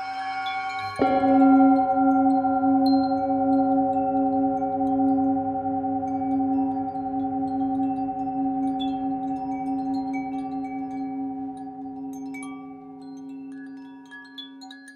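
A singing bowl is struck with a mallet and rings out.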